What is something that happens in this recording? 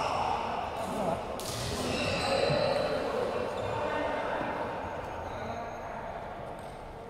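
Two men talk casually nearby in a large echoing hall.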